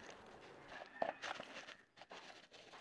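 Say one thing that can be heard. Loose soil pours from a container and patters onto the ground.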